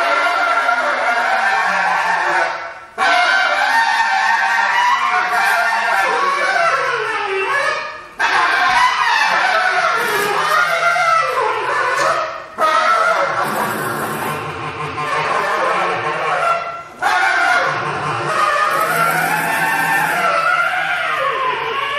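A bass clarinet plays loud, wailing phrases with short sudden breaks.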